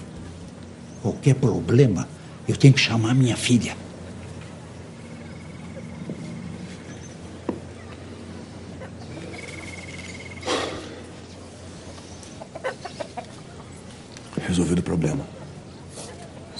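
A young man speaks softly and earnestly, close by.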